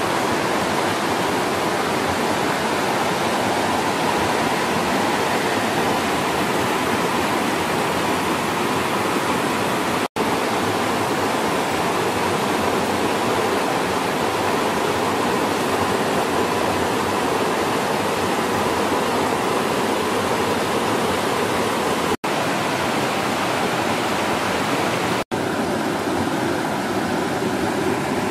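A stream rushes and splashes over rocks.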